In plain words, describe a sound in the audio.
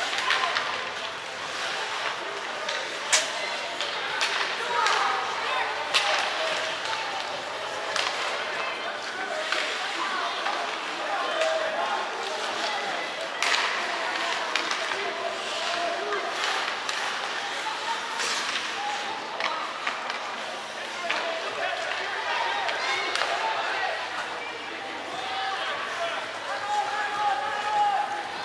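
Skates scrape and swish across the ice in a large echoing arena.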